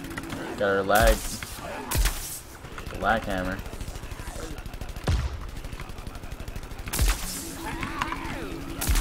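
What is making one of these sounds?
A toy blaster fires in short, loud bursts.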